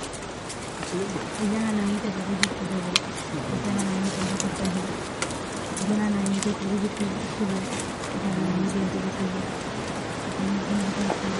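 A young man speaks loudly outdoors.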